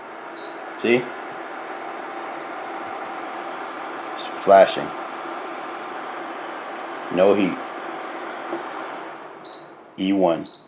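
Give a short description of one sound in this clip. An induction cooker hums steadily with a whirring fan.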